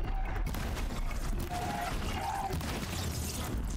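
A fire crackles and hisses.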